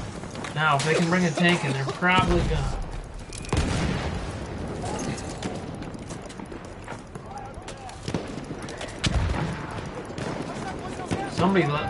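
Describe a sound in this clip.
Gunfire cracks in bursts.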